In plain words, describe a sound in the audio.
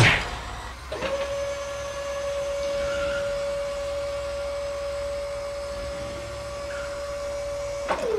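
A small car engine hums steadily.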